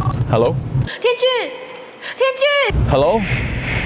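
A young woman speaks tearfully into a phone.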